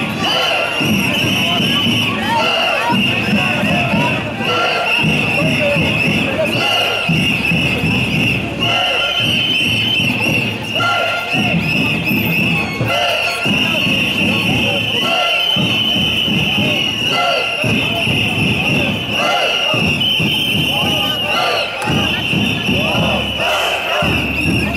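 A large crowd of marching protesters chants loudly in unison outdoors.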